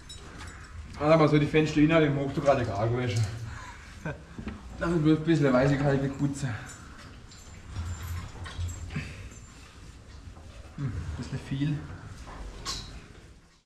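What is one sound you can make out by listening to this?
A man talks nearby in short bursts.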